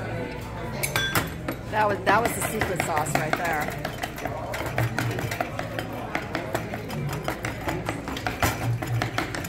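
A metal spoon scrapes and clinks against a stone bowl.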